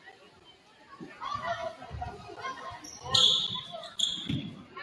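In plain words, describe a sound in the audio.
A basketball bounces on the court with dull thumps.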